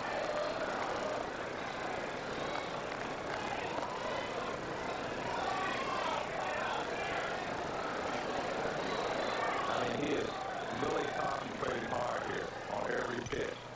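A crowd murmurs in an open-air stadium.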